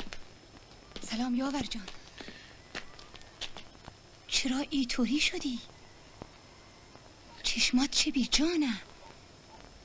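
An elderly woman speaks loudly and with animation, close by.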